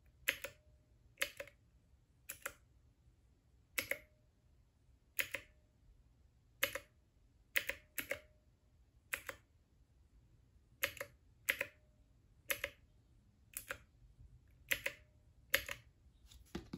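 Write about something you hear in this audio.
Short electronic beeps sound from a small game device.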